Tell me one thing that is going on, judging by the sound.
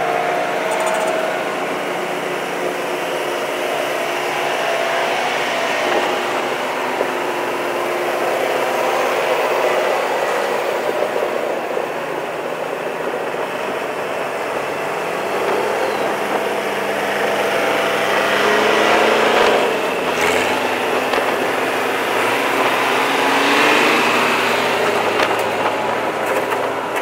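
Tyres roll and hum on the road surface.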